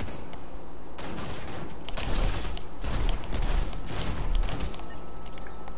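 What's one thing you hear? A gun fires in rapid, loud bursts.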